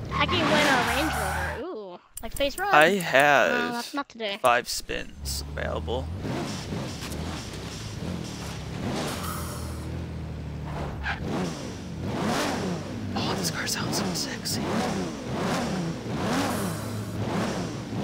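A sports car engine roars and revs.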